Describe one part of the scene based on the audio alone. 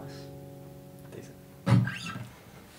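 An acoustic guitar rings with a strummed chord.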